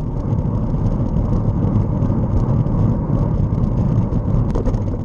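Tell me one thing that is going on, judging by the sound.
A vehicle drives along a road with a steady low rumble of engine and tyres.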